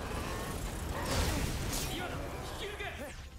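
An explosion booms in a game.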